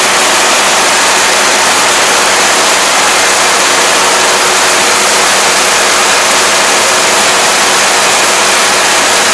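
A combine harvester engine roars steadily close by.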